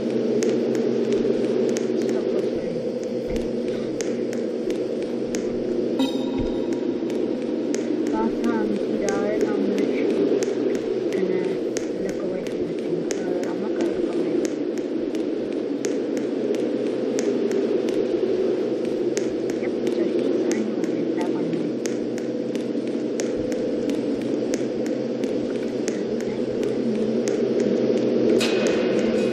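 Footsteps tap steadily over a stone path.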